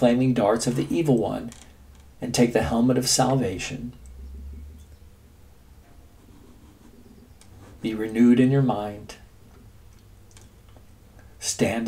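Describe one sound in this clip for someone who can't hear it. An elderly man speaks calmly and close to a microphone, with pauses.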